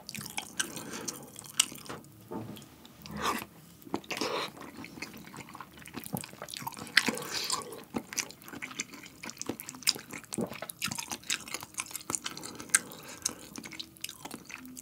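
A young man chews and slurps food close to a microphone.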